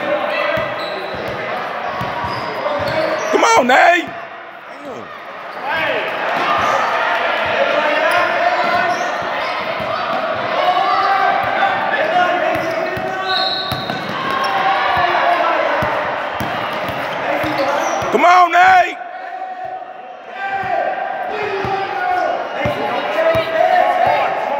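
A crowd of young players and spectators shouts and calls out.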